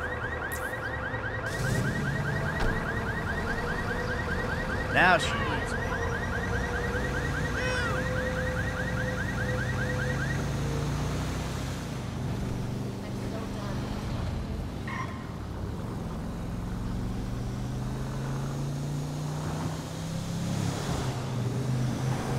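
A car engine hums and revs as the car drives along a road.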